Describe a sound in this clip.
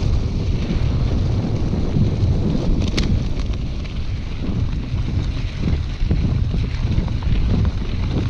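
Bicycle tyres crunch and roll over dry leaves and dirt.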